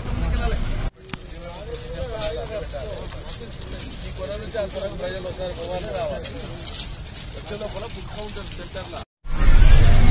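A crowd of men chatters while walking outdoors.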